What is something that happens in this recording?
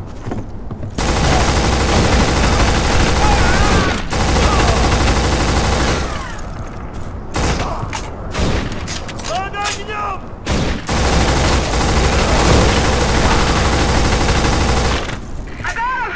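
An assault rifle fires long, rapid bursts at close range.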